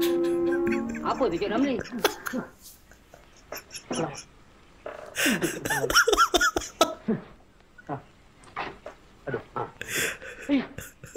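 A young man laughs loudly and heartily close to a microphone.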